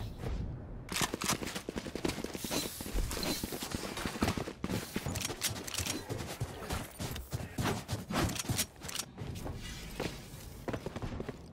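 Metal weapons clink and rattle as they are drawn in quick succession.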